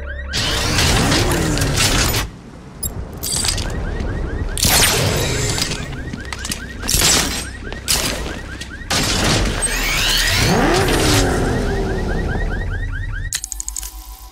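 A powerful vehicle engine rumbles and whines nearby.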